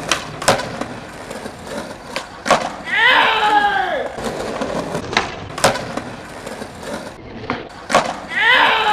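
A skateboard tail clacks against the ground.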